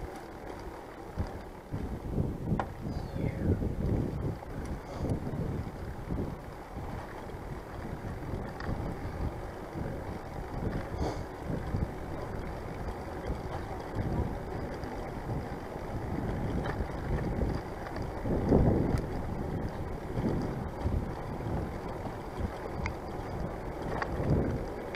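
Bicycle tyres roll over a paved path.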